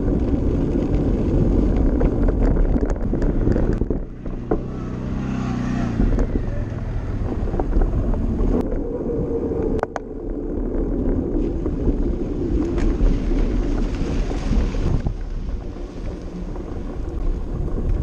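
Bicycle tyres rumble and crunch over a gravel road.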